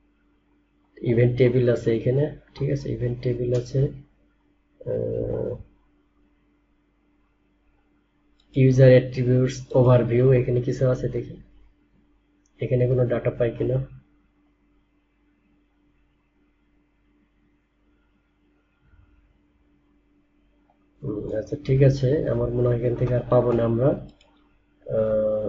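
A young man speaks calmly into a close microphone, pausing often.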